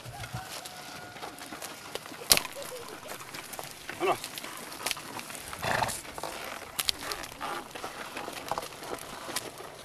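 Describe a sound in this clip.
Mules' hooves thud on the soft ground.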